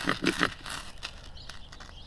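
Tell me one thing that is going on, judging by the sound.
A striker scrapes harshly along a metal rod in quick strokes.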